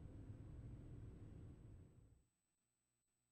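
A truck engine rumbles low and steady, then cuts off.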